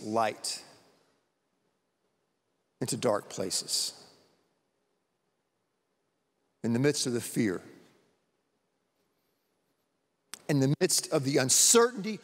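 A man speaks calmly into a microphone in a large echoing hall, pausing between phrases.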